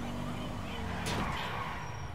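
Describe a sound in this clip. A car bumps into another car with a sudden thud.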